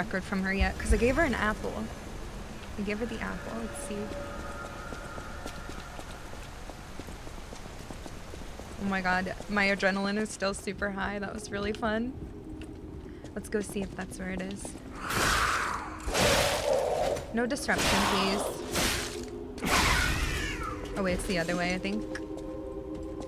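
A young woman talks casually and closely into a microphone.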